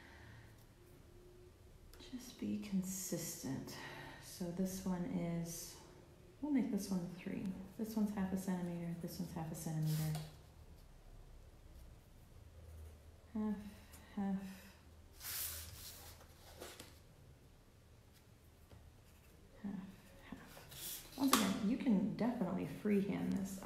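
A pencil scratches along a ruler on paper.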